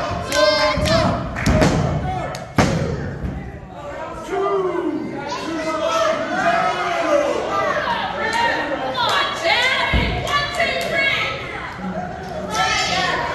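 A crowd cheers and shouts in an echoing hall.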